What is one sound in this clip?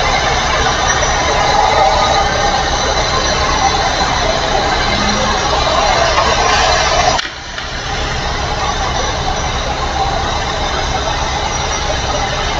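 A truck engine drones steadily while driving at speed.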